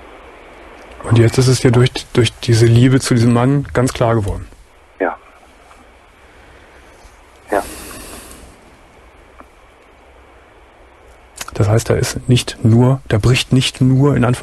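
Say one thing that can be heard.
A middle-aged man speaks with animation into a close headset microphone.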